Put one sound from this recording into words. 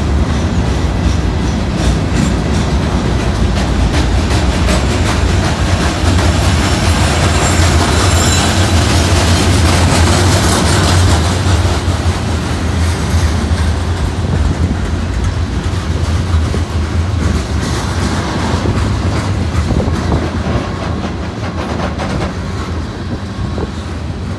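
Steel wheels clank and click over rail joints.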